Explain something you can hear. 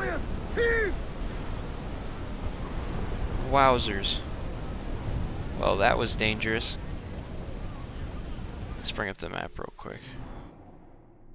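Stormy wind and waves roar around a sailing ship.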